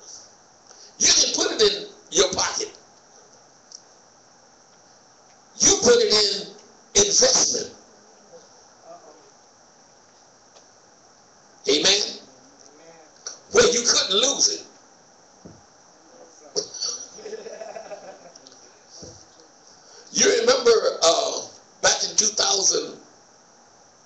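A middle-aged man speaks slowly into a microphone in pauses, in an echoing hall.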